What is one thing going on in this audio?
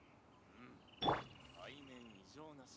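A bright magical shimmer rings out with a swoosh.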